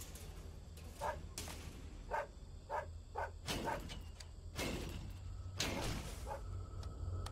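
A chain-link fence rattles and clanks.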